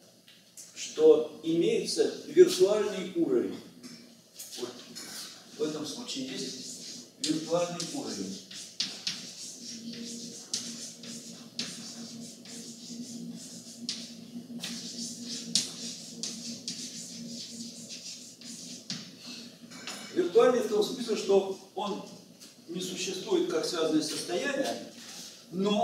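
An elderly man lectures calmly.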